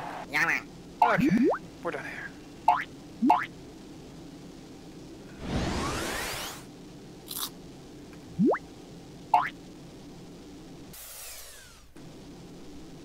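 Short game sound effects chirp, zap and whoosh now and then.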